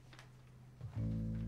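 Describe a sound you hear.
A guitar is strummed on stage.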